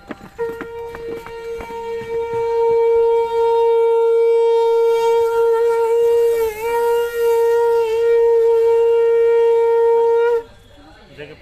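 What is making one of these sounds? A conch shell is blown in a long, steady, loud note.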